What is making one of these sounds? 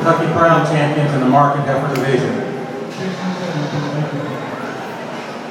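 A young woman talks loudly close by.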